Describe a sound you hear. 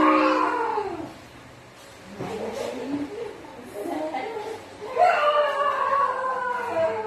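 A dog howls close by in long, wavering cries.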